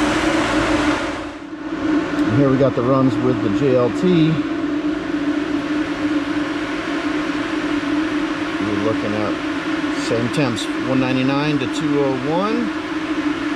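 A car engine hums steadily and revs up and down.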